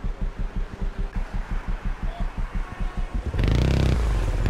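A motorcycle engine idles with a fast, throbbing putter.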